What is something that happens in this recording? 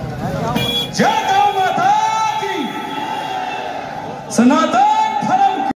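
A man sings into a microphone through loud speakers, holding long notes.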